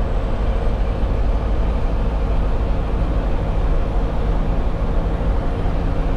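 A truck's diesel engine drones steadily from inside the cab.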